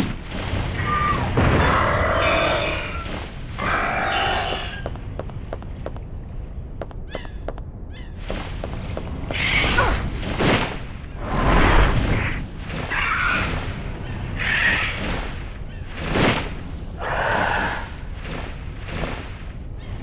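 A pterosaur screeches.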